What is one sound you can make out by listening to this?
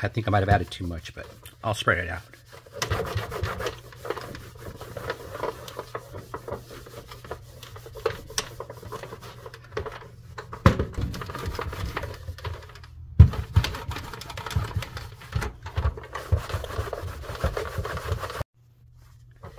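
A cloth rubs and squeaks against a plastic case.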